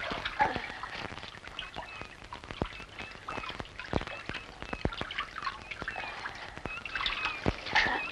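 Sand scrapes softly as a woman crawls.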